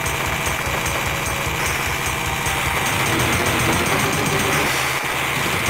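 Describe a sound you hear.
An electric beam crackles and buzzes.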